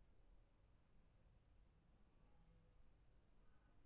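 Cloth rustles softly as hands smooth it out.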